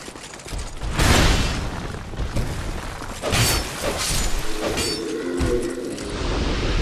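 A sword slashes and strikes armour.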